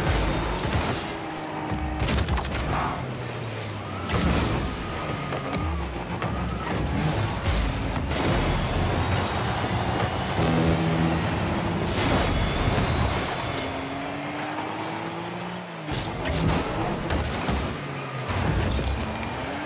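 A game car's engine hums and boosts with a rushing roar.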